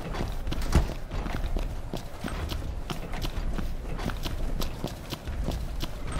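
Footsteps run across gravel.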